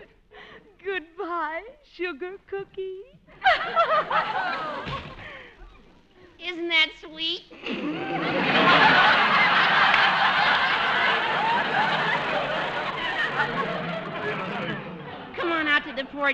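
A woman speaks with animation through an old radio broadcast.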